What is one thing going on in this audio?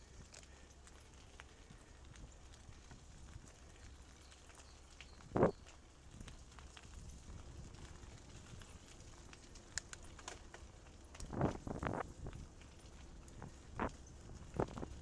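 Bicycle tyres crunch and rattle over a gravel path.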